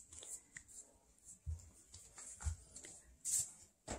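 A toddler's bare feet patter softly on a wooden floor.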